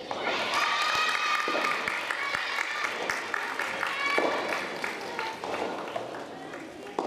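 Young women shout and cheer loudly from across the hall.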